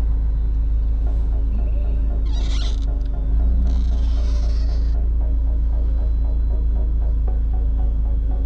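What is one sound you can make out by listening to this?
An electric motor whirs steadily as a convertible roof folds back.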